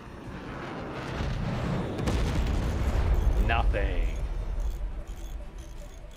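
Deep explosions boom and rumble.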